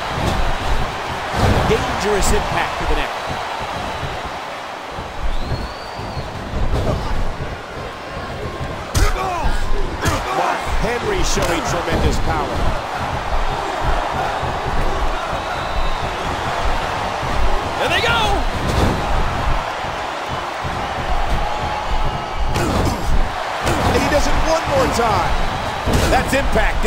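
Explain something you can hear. Bodies thud hard onto a wrestling mat.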